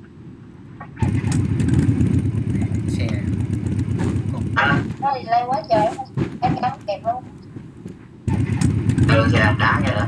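A motorbike engine rumbles.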